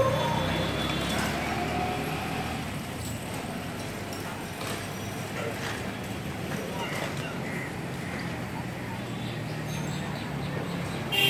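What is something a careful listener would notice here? Cycle rickshaws roll past with a soft rattle.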